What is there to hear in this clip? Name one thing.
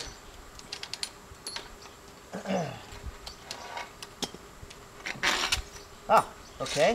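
Metal clinks and scrapes against the ground close by.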